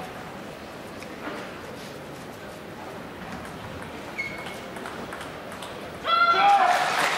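A ping-pong ball clicks back and forth on the table and paddles.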